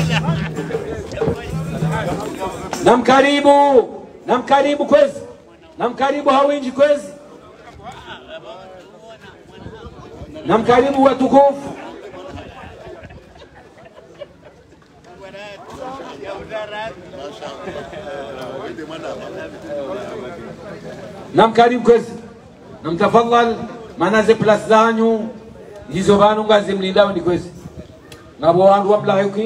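An elderly man chants loudly into a microphone, heard through loudspeakers outdoors.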